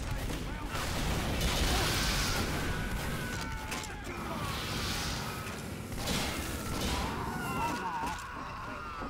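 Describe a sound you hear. A flamethrower roars with a loud rushing blast.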